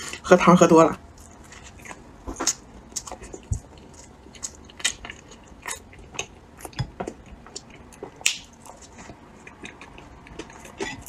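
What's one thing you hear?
A young woman chews food with wet, crackling mouth sounds close to a microphone.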